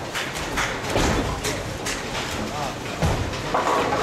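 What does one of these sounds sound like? A bowling ball rolls down a lane with a low rumble.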